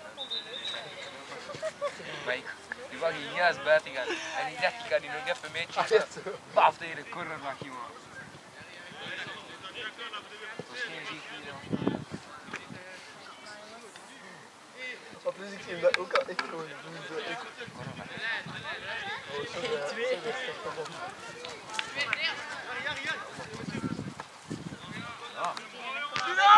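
Adult men and women chat casually nearby, outdoors.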